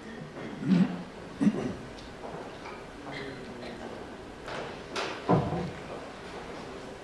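A woman speaks loudly on a stage in a large echoing hall.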